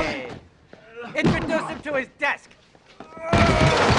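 A body thuds onto the floor.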